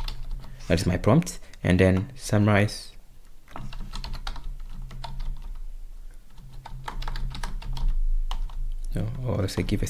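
Computer keys clatter as someone types.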